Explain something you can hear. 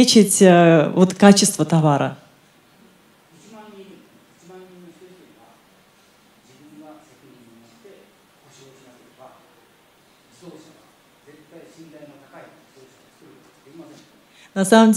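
A woman speaks through a microphone in a large hall, loud at first, then quietly.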